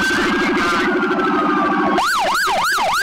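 A vehicle horn blares in quick pulses.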